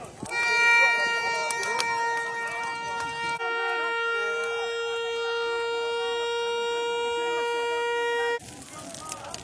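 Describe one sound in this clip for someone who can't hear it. A plastic horn blares with a loud, steady tone.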